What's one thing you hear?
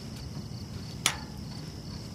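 A metal gate clanks shut.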